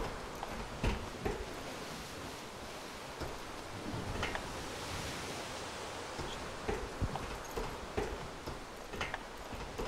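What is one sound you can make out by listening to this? Footsteps clang on metal stairs and decking.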